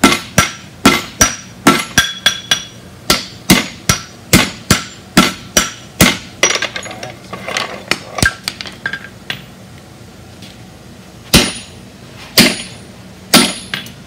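A hammer rings sharply on hot metal and an anvil in quick blows.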